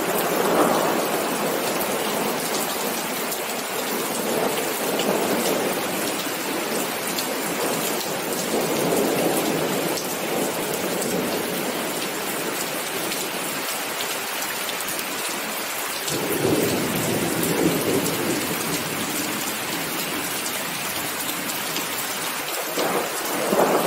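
Raindrops patter and splash on wet paving.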